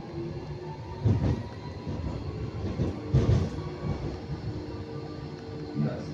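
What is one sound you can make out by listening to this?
A tram's wheels clatter and thump over rail joints.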